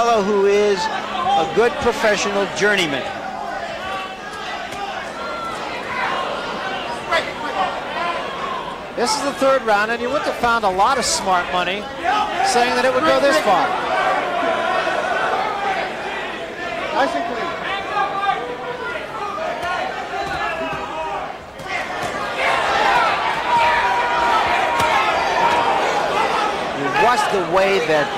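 A large crowd cheers and shouts in a big hall.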